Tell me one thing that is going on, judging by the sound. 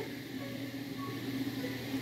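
A fork scrapes on a ceramic plate.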